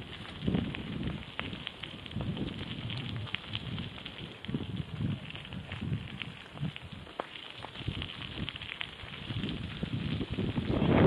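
Bicycle tyres crunch and rattle over a gravel path.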